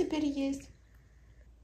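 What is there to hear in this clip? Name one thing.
A baby babbles briefly.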